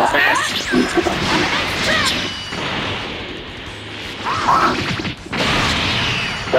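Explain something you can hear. Energy blasts whoosh and crackle in a fight.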